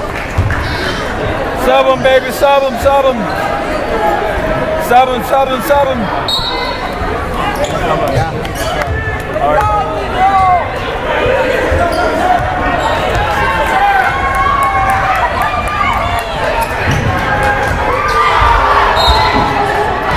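A crowd of spectators talks and cheers in a large echoing gym.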